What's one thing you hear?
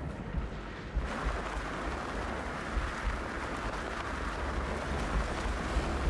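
Wind rushes loudly past during a steep free fall.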